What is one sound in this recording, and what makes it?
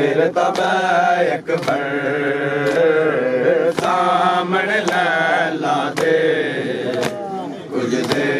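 Men beat their chests in a slow, steady rhythm.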